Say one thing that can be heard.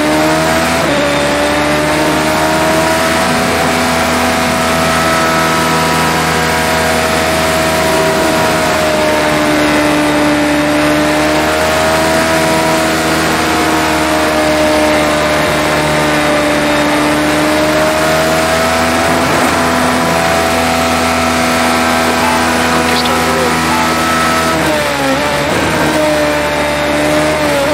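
A racing car engine whines at high speed, its pitch rising and falling with gear changes.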